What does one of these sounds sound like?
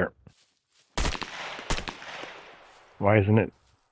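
A rifle fires two loud shots that echo and fade.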